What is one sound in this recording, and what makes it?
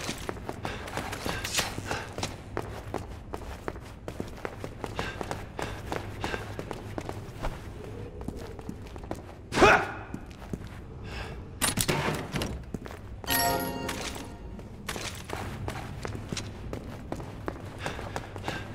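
Footsteps thud quickly on a hard floor and stairs.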